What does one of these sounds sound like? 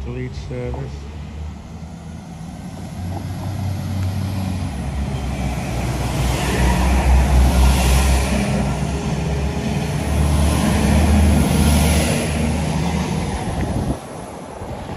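A passenger train rolls in and rushes loudly past close by.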